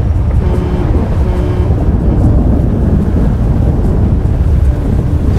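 Tyres crunch over rough ground.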